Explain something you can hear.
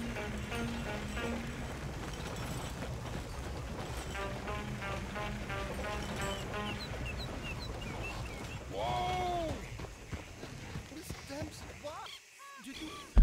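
Wagon wheels rumble and creak over a dirt track.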